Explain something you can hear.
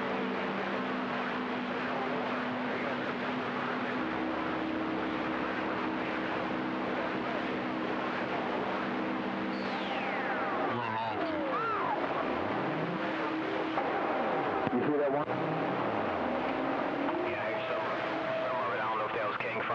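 Steady humming tones drone from a radio receiver.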